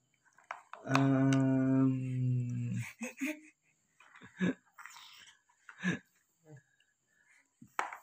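A baby giggles and laughs.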